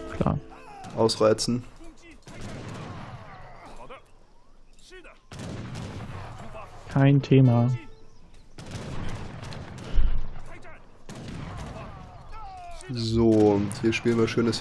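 Weapons clash in a small battle.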